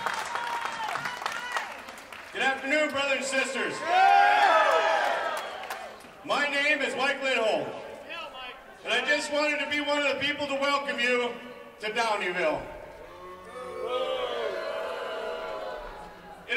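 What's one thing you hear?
A man speaks forcefully into a microphone, amplified through loudspeakers outdoors with echo.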